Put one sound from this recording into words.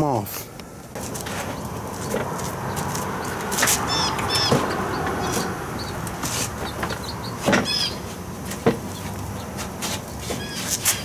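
Gloved hands rub and tap against a car's plastic bumper.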